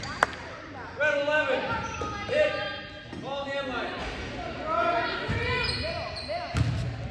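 Young women on the bench shout and cheer.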